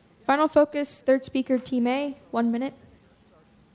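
A young girl speaks loudly through a microphone.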